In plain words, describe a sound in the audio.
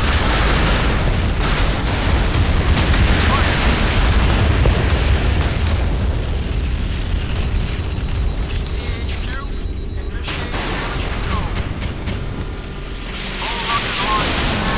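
A boat's engine roars as it cuts through water.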